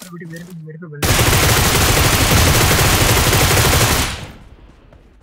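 Automatic gunfire rattles in a loud, rapid burst.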